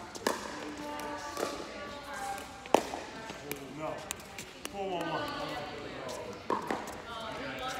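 Paddles hit a plastic ball with sharp hollow pops.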